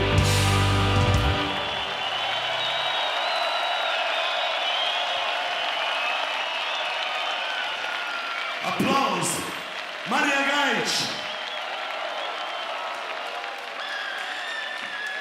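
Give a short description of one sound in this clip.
A huge crowd cheers and whistles outdoors.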